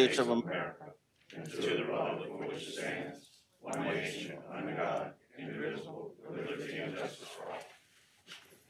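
A group of people recite together in a large room, heard faintly.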